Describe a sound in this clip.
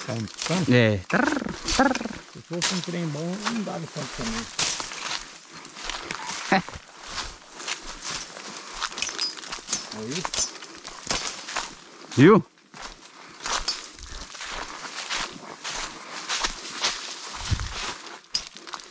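Footsteps crunch through dry leaves and brush along a trail.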